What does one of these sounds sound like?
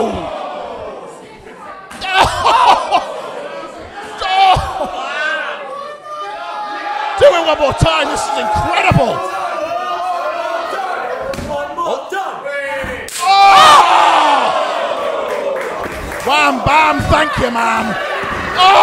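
A crowd cheers and shouts in an echoing hall.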